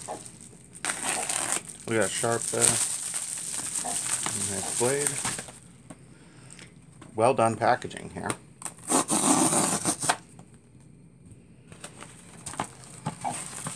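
Paper rustles and crinkles as an envelope is torn open.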